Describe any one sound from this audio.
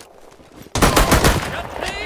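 A shotgun is pumped and reloaded with metallic clicks.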